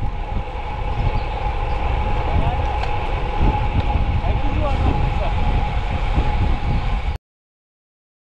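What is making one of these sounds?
Wind rumbles and buffets loudly while cycling outdoors.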